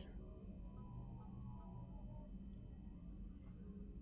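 A game menu gives a soft electronic beep as the selection moves.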